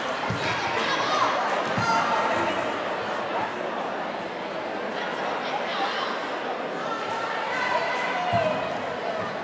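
A ball thuds against a sports shoe.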